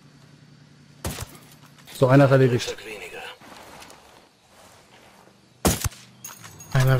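A rifle fires a sharp single shot.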